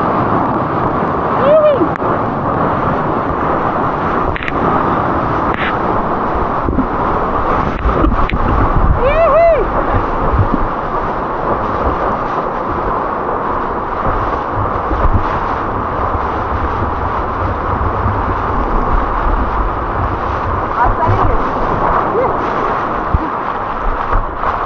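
Water rushes and splashes loudly close by.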